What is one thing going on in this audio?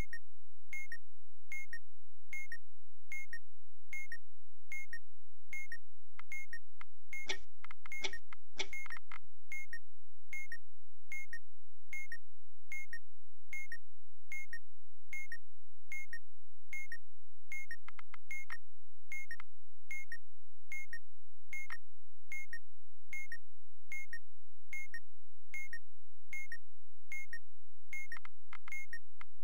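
A timer ticks steadily and evenly.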